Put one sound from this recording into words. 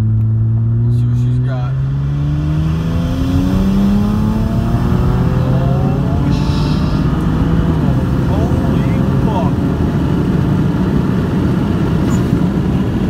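A car engine revs up hard and climbs in pitch again and again as the gears change.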